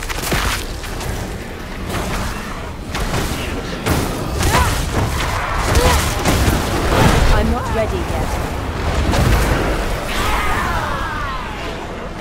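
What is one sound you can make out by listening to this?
Fiery spells burst and roar in a fight.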